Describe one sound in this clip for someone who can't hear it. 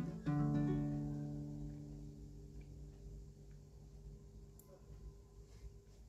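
A ukulele chord is strummed once and rings out slowly.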